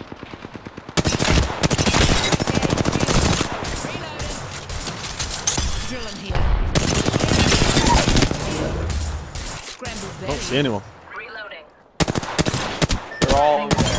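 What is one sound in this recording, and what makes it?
Rapid bursts of gunfire rattle close by.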